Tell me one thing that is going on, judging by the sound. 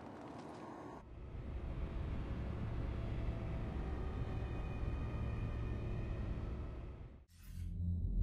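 A spaceship engine rumbles low and steadily, then cuts off.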